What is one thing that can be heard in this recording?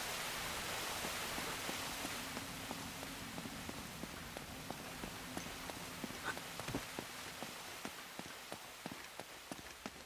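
Footsteps run on stone and climb stone steps.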